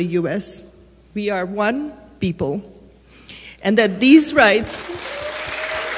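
A woman speaks into a microphone in a large hall, reading out calmly.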